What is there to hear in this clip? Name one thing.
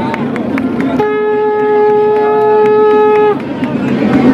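A conch shell blows a long, steady note.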